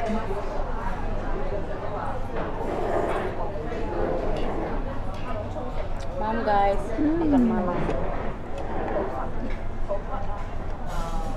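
A young woman speaks casually close by.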